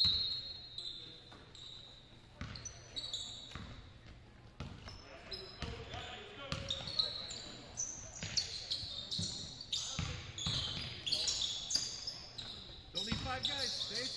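Sneakers squeak sharply on the gym floor.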